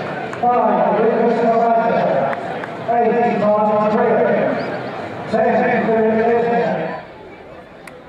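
A crowd sings an anthem loudly in an open stadium.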